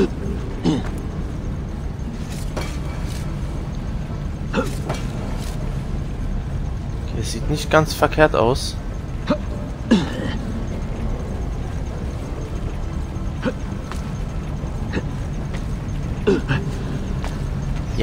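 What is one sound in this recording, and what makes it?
Soft knocks and scrapes sound as a climber grips a stone wall.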